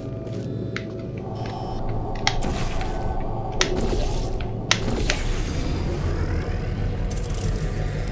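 A laser beam hums steadily.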